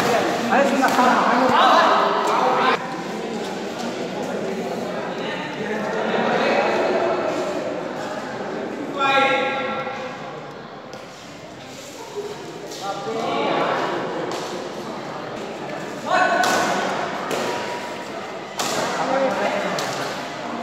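A shuttlecock is struck by rackets with light pops.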